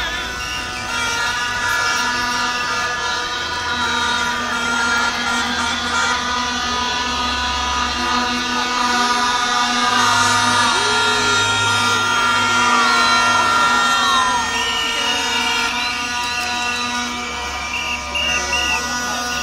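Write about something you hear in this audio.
A large crowd outdoors chatters and calls out while marching.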